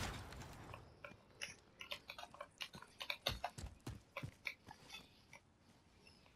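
Footsteps thud quickly on the ground.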